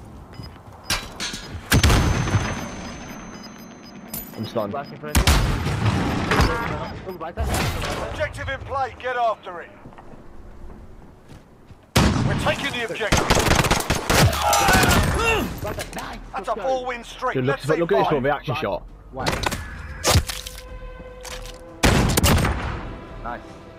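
Gunshots ring out in short, loud bursts.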